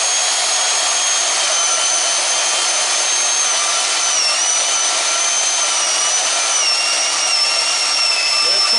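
A band saw hums and whines steadily as its blade cuts through metal.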